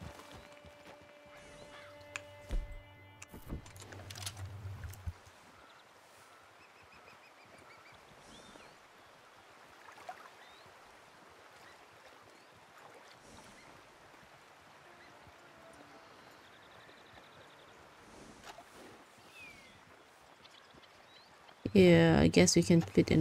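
Water flows gently over stones in a stream.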